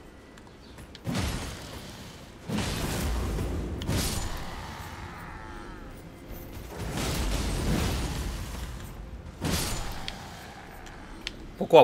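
Heavy weapons clash and strike in a fight.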